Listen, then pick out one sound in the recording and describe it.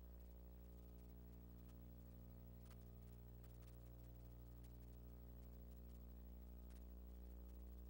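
Footsteps click across a hard floor.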